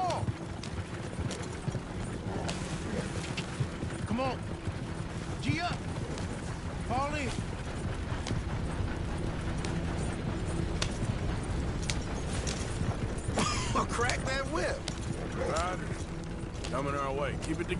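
A horse-drawn wagon rumbles and creaks along a dirt track.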